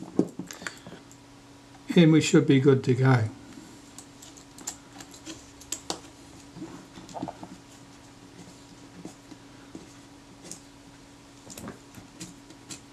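Small metal parts click and tap softly, up close.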